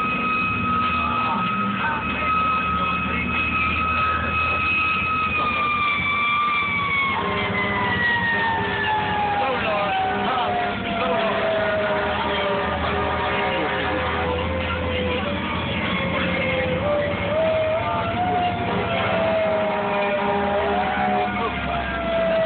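Electronic music plays loudly over speakers.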